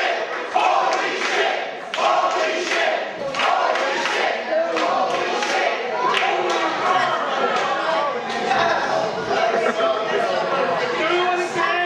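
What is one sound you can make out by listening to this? A small crowd chatters and shouts in an echoing hall.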